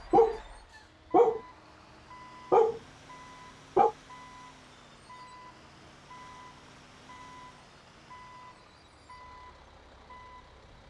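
A truck engine rumbles low.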